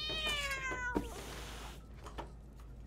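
A cat hisses sharply.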